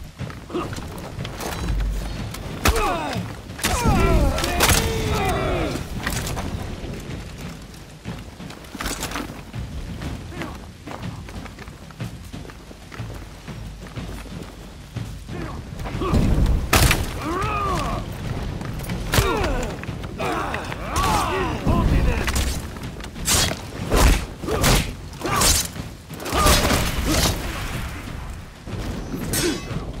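Metal blades clash and strike.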